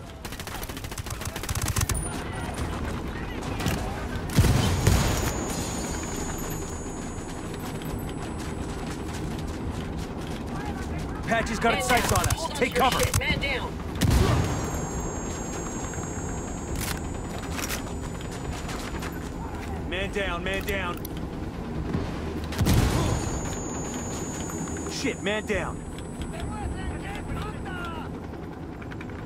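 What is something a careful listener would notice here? A rifle fires muffled shots in quick bursts.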